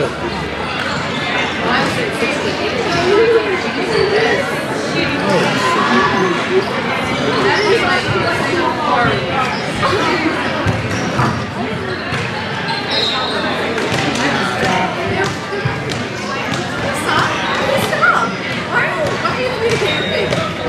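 Young women call out to each other in a large echoing hall.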